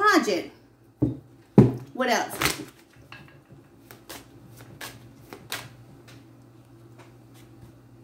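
Playing cards tap and shuffle softly.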